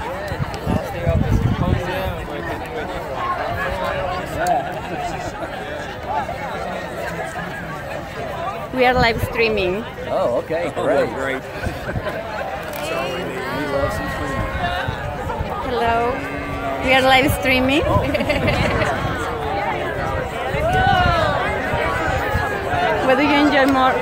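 A large crowd chatters all around outdoors.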